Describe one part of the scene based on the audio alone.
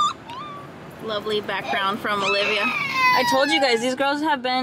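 A young child cries and whines nearby.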